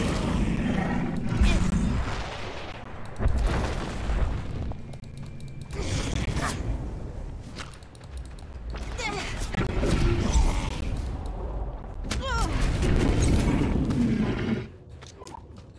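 Fists thud against a beast in a fight.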